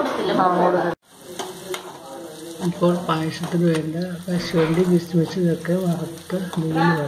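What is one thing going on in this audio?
A metal spatula scrapes and stirs food in a wok.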